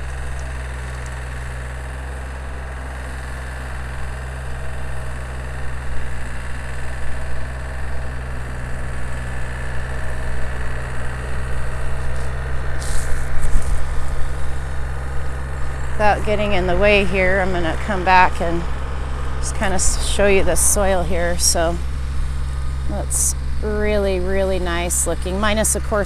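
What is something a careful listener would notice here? A tractor engine hums steadily in the distance.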